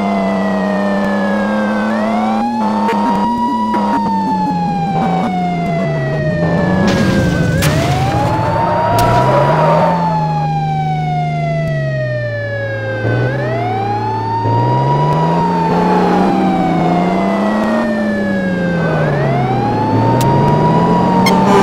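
An engine hums, its pitch rising and falling with speed.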